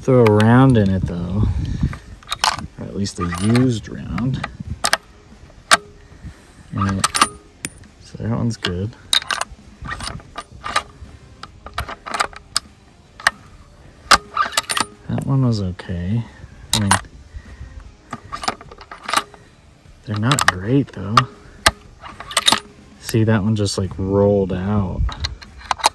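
A rifle bolt clicks and clacks as it is worked back and forth.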